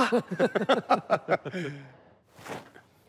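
A middle-aged man laughs heartily up close.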